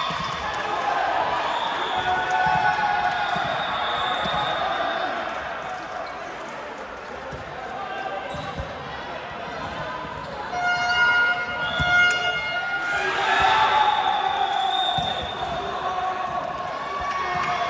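A volleyball is struck with dull thuds.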